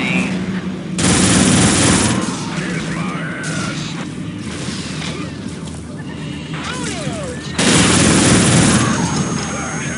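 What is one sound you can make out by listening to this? An automatic rifle fires bursts in a video game.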